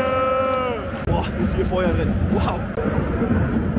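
A young man speaks close up to the microphone.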